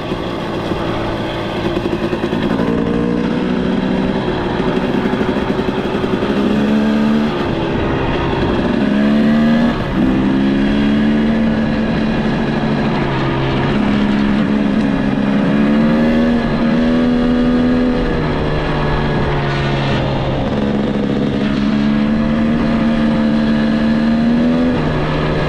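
An off-road vehicle's engine hums and revs, rising and falling in pitch as it shifts.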